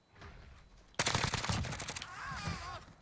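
Rapid gunfire bursts loudly and close.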